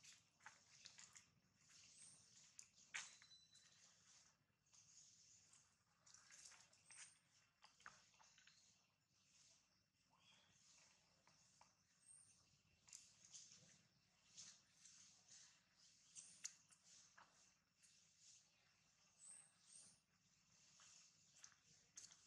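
A baby monkey suckles with soft, wet smacking sounds.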